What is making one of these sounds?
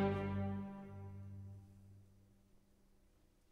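A string orchestra holds a final chord that slowly fades away.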